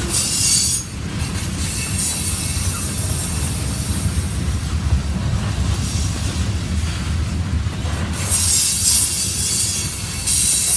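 A freight train rumbles past close by, its wheels clattering on the rails.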